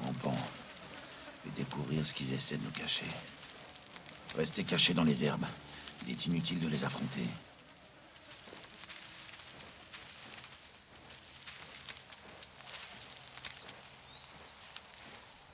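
Grass rustles as someone crawls through it.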